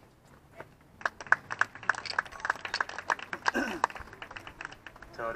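Spectators clap outdoors.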